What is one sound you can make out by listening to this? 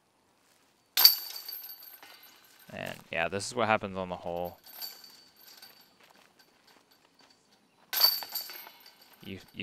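A flying disc hits metal chains with a jangling clatter.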